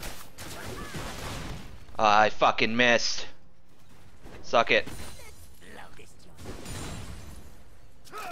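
Magic spells and weapon strikes clash in a fight.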